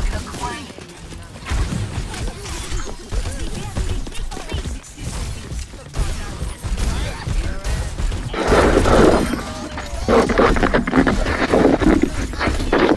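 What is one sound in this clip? A gun fires loud blasts in quick bursts.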